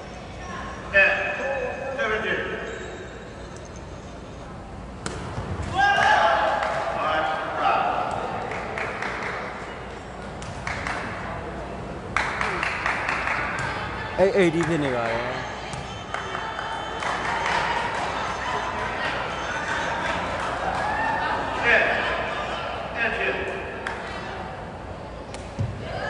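A ball is kicked with sharp thuds in a large echoing hall.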